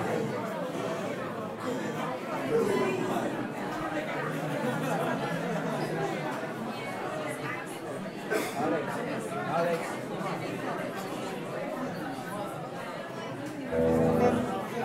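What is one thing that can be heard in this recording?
A young woman sings into a microphone through loudspeakers.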